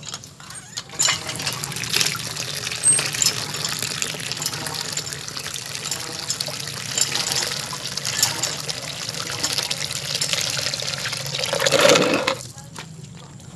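Water pours from a hose and splashes into a bucket.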